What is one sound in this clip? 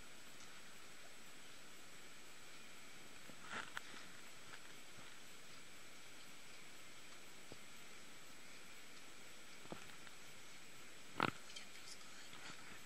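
A cat's fur rustles softly against a carpet as it rolls.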